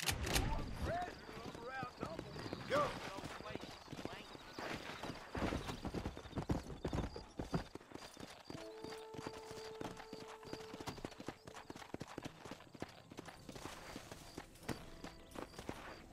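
A horse's hooves clop steadily on dirt.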